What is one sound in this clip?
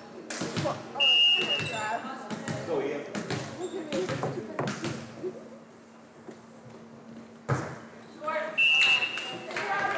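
A referee blows a shrill whistle.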